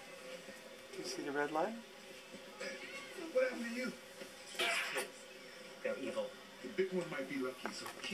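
A man talks softly and warmly up close.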